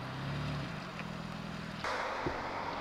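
A car engine idles and revs.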